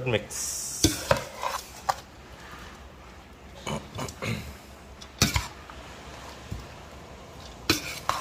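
Shredded vegetables rustle softly as they are mixed.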